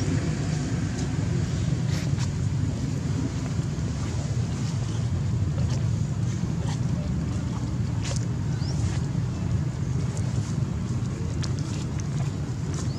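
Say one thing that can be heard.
A baby monkey gives soft, high squeaks.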